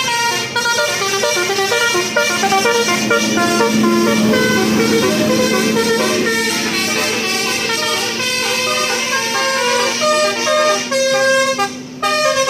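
A bus horn plays a melodic tune.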